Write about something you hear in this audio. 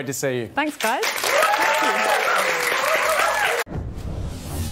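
A studio audience claps and cheers.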